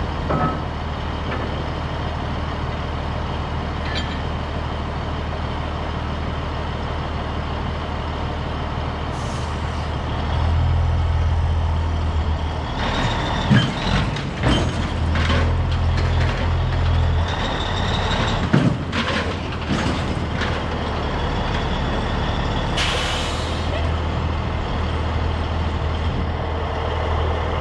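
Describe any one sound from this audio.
A diesel semi truck idles outdoors.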